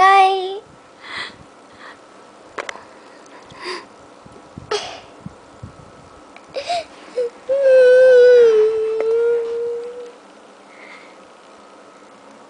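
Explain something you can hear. A young girl sniffles and gasps between sobs.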